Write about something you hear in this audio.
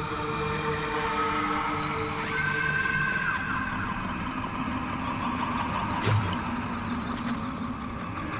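Magic spells burst with sharp crackling blasts.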